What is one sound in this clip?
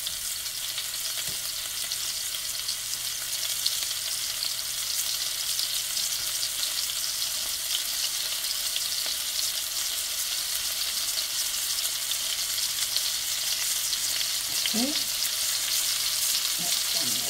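Meatballs sizzle and crackle in hot oil in a pan.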